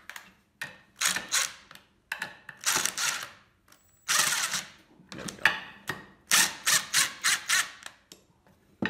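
An impact wrench rattles in short bursts.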